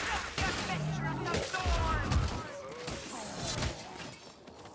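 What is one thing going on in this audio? An axe strikes with heavy, wet thuds.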